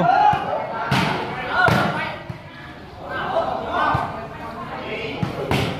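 Players kick a ball with dull thuds.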